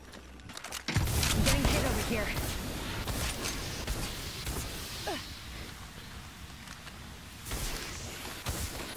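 Loud explosions boom and crackle close by.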